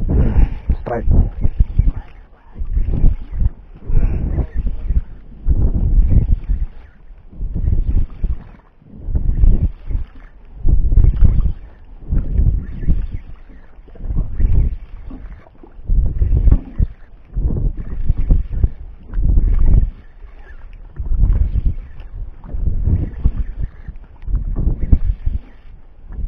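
A fishing reel cranks and clicks as line is wound in.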